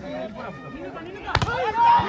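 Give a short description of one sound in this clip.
A volleyball is struck hard in a spike.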